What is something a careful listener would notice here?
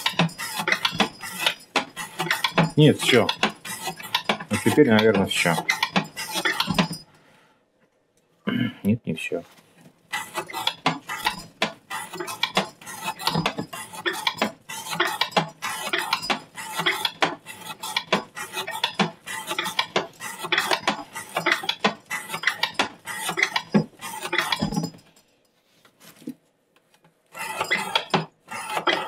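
Small metal parts clink in a tray.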